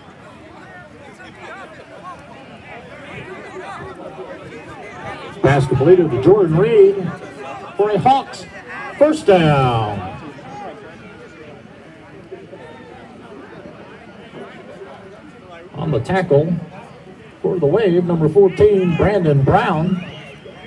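Spectators murmur and call out in the distance outdoors.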